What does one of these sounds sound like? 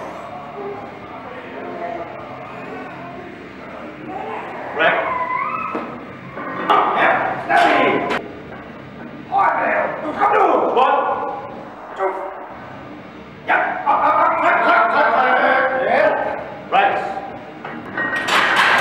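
A loaded barbell clanks as it is set back in a rack.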